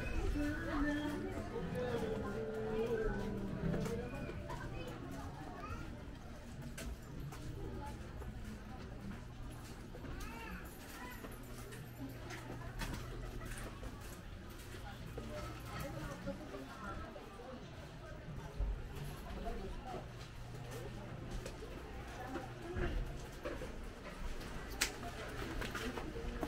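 Footsteps scuff along a narrow paved alley.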